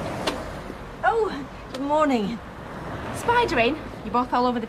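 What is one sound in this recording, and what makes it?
An elderly woman speaks warmly and cheerfully close by.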